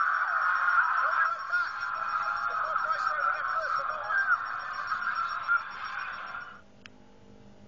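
A man talks excitedly through a microphone.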